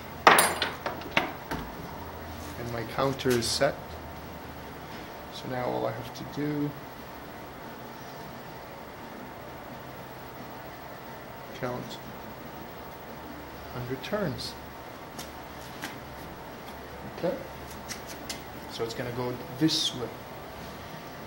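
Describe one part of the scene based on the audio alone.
A man talks calmly close by, in short bursts with pauses.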